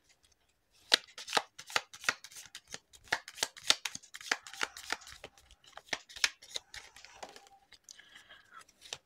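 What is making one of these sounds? Cards rustle and tap softly as they are handled.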